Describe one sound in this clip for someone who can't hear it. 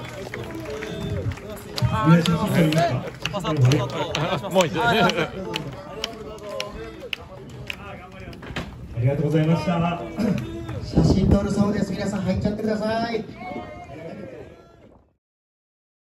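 A young man talks into a microphone over loudspeakers, with animation.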